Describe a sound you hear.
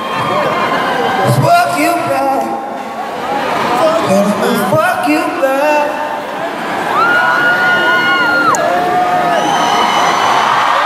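A man sings into a microphone, amplified through loud speakers in a large echoing hall.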